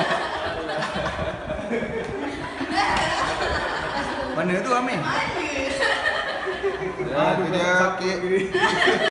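A man talks and laughs nearby.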